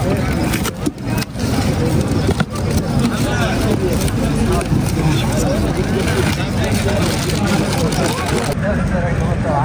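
A crowd of men murmurs and chats nearby.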